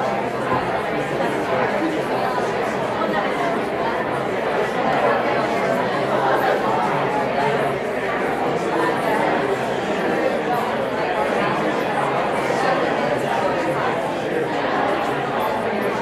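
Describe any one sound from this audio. A crowd of adults murmurs and chatters in a large echoing hall.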